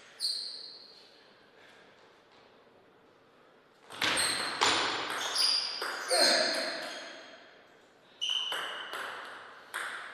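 A table tennis ball clicks sharply back and forth off paddles and a table in an echoing hall.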